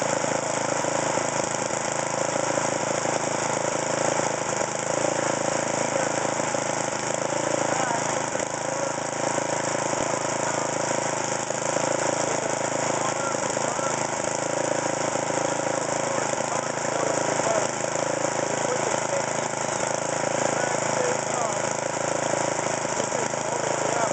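A small petrol engine idles steadily close by.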